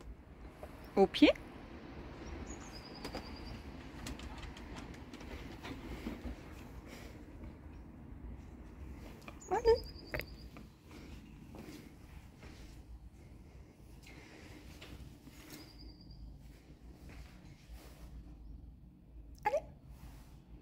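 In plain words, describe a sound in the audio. A dog whines briefly.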